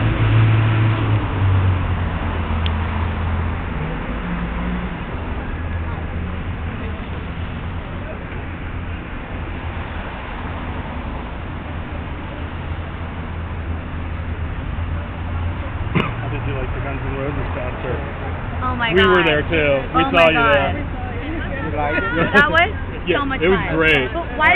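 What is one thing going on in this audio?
Traffic rumbles steadily outdoors.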